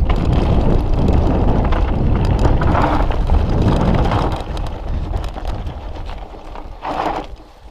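Bike tyres crunch and rattle over loose gravel.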